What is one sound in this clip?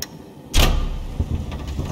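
A button clicks under a finger.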